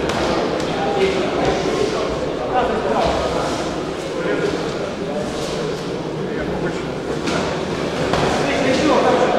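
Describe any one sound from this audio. Boxing gloves thud against each other and against bodies.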